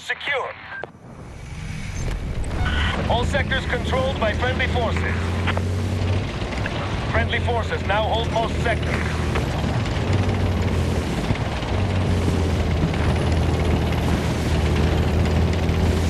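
A tank engine rumbles low and steadily as the tank drives.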